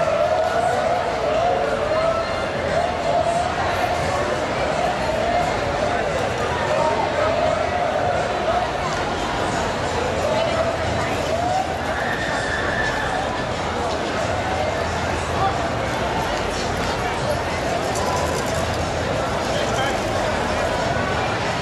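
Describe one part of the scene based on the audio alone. A large crowd chatters outdoors on a busy street.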